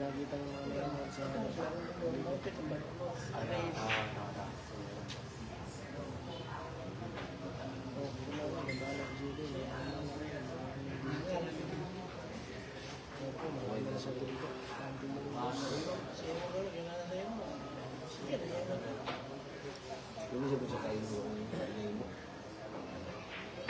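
A crowd of young men chatters nearby.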